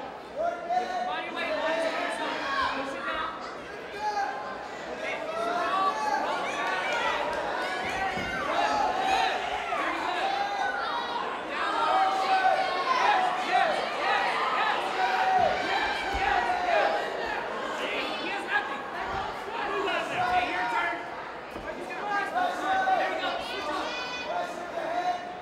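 A crowd shouts and cheers loudly in an echoing hall.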